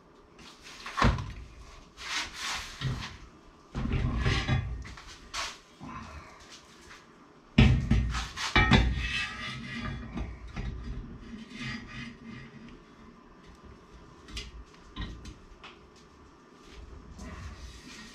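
A steel bar clanks and knocks against a metal vise.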